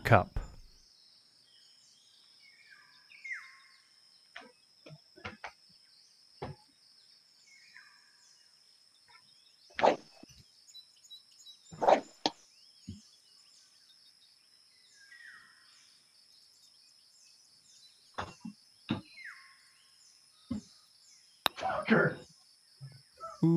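A man talks now and then in short bursts, close by.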